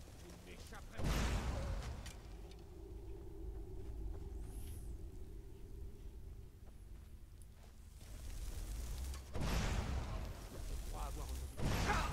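Flames roar and whoosh in loud bursts.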